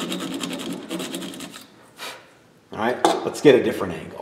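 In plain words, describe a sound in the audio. A metal saw is set down with a clatter on a wooden table.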